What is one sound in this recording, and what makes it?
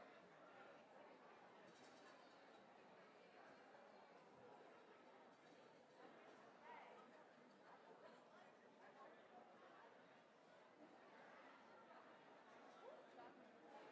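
An audience cheers and chatters in a large echoing hall.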